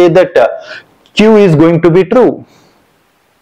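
A young man speaks clearly and calmly into a close microphone, explaining.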